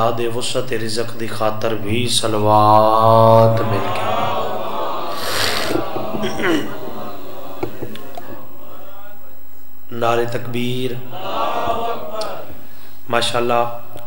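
A young man recites with strong emotion through a microphone and loudspeakers, in a reverberant space.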